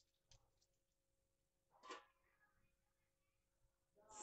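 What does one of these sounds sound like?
A hand squishes and mixes a wet paste in a bowl.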